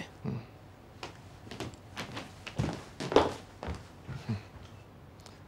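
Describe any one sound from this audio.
Footsteps tap across a hard floor.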